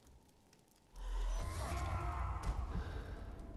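A fiery blast suddenly bursts with a loud roar.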